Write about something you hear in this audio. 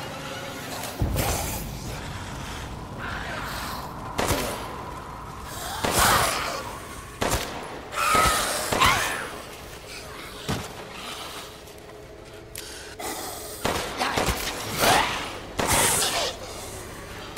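A pistol fires sharp, loud shots now and then.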